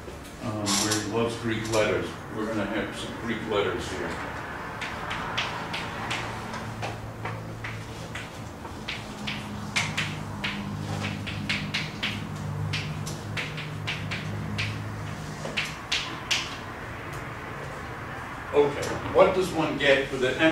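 An elderly man lectures calmly, his voice echoing in a large room.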